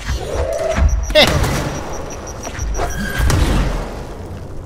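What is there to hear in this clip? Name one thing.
Blasts of energy boom and crackle as they strike a wall.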